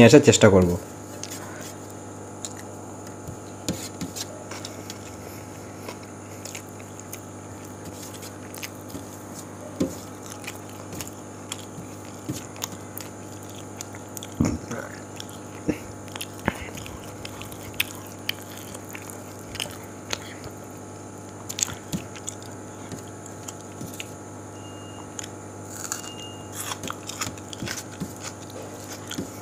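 Fingers squelch and mix rice on a metal plate.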